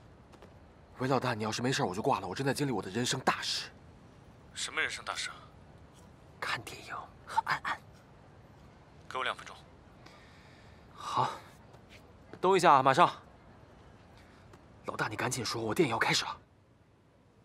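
A young man talks with animation on a phone call.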